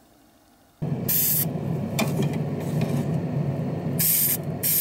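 An airbrush hisses in short bursts of spray.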